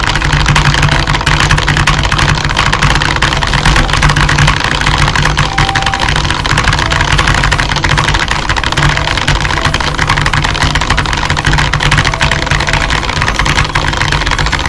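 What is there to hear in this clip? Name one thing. Keys clatter rapidly and steadily on a keyboard.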